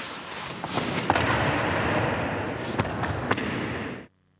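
A body is thrown and thuds onto a padded mat.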